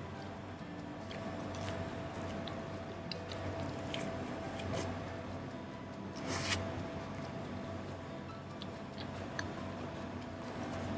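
A man chews food noisily up close.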